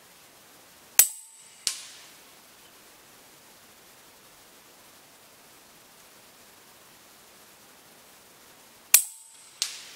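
An air rifle fires with a sharp crack, twice.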